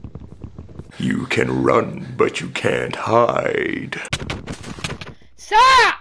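A young man shouts and yells with animation, close by.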